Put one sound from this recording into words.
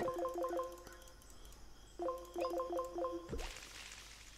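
Short electronic chimes ring out in quick runs.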